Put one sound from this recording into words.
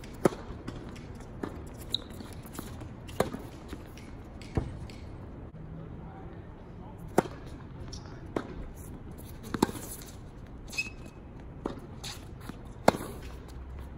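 Tennis rackets strike a ball in a steady rally, with sharp pops back and forth.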